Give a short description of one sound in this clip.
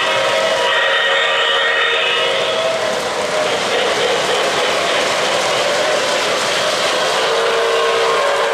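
O-gauge model freight cars rumble and clatter over three-rail metal track.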